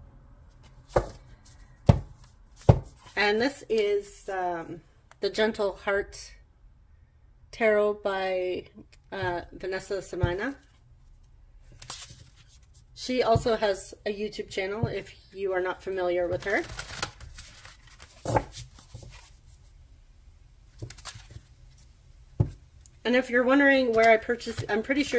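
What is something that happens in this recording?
A deck of cards is shuffled and tapped together.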